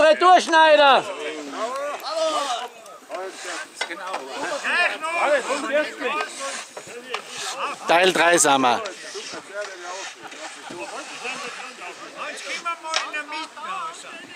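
A group of men talk and call out loudly outdoors.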